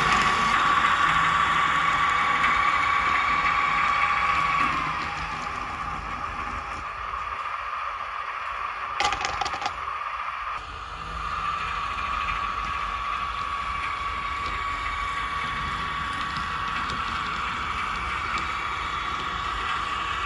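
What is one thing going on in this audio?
Metal wheels of a model locomotive roll over model track.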